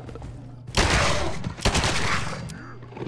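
A revolver fires two loud shots.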